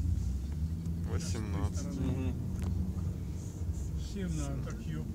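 A man speaks calmly close by inside the car.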